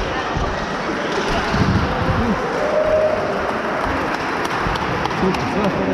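Men chatter nearby in a large echoing hall.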